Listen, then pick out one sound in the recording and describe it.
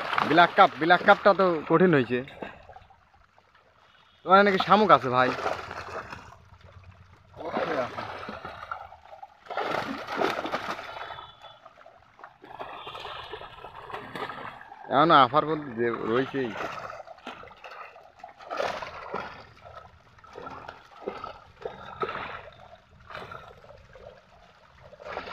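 Fish thrash and splash in shallow water.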